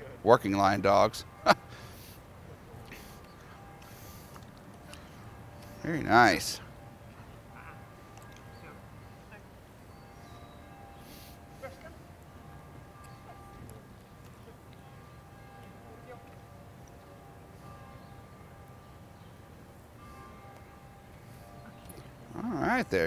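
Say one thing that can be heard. A man speaks to a dog in short, coaxing bursts close by.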